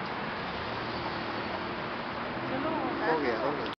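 Traffic roars steadily along a busy street outdoors.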